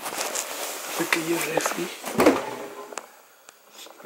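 A small fridge door opens with a soft thud.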